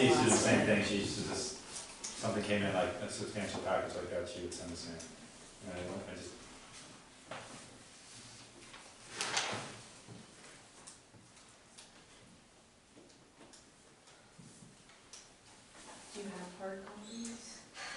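A man speaks calmly in a room with a slight echo.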